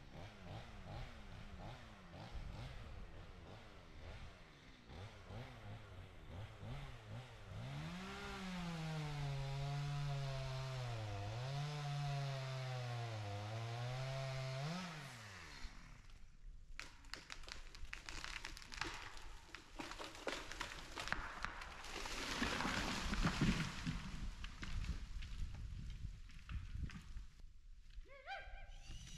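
Wind blows through tall trees.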